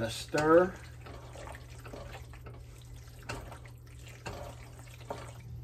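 A wooden spoon scrapes and stirs food in a pot.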